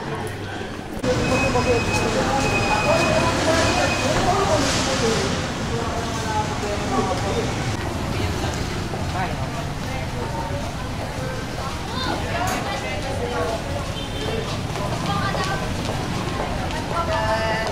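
Men and women chatter nearby as they walk past on a pavement.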